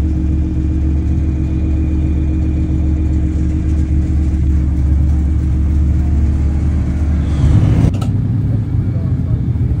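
A sports car engine idles with a deep, steady rumble close by.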